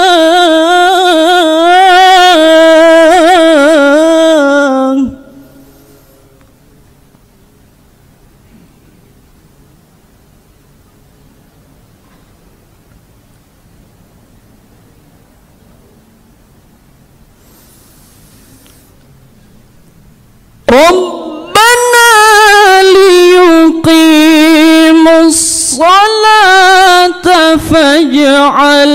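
A young man chants melodiously into a microphone, loud and close, with long held notes.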